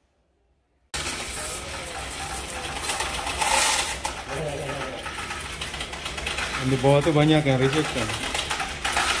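A coin machine rattles and whirs as coins are poured in.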